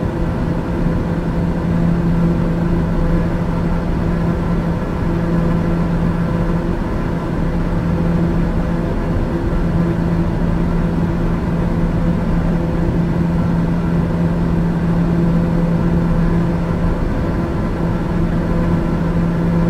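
A jet's engines drone steadily with a low hum inside the cabin.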